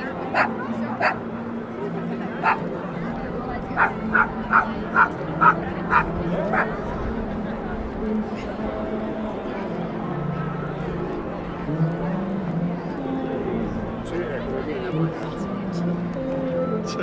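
A crowd murmurs and chatters outdoors in a busy open square.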